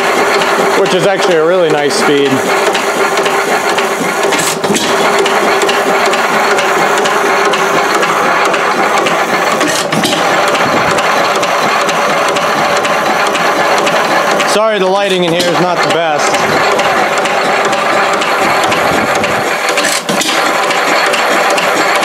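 An old stationary engine runs with a steady, rapid chugging and clatter close by.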